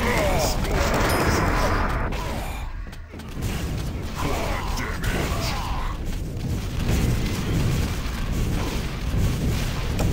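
A game's weapons fire in rapid bursts.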